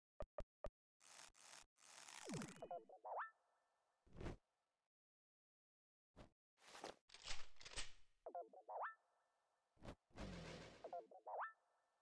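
Game battle sound effects whoosh and swell with chiming rising tones.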